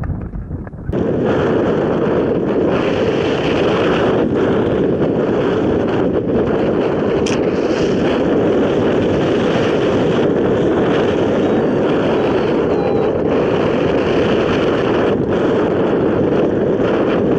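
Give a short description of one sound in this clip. Wind rushes loudly and steadily past outdoors.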